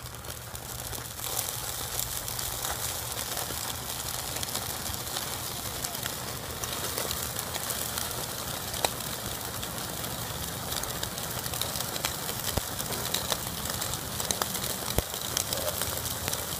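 Raw steaks sizzle and crackle loudly on a hot grill.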